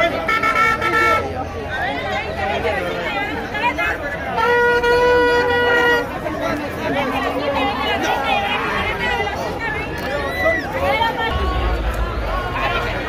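A large crowd of men and women chatters and shouts outdoors.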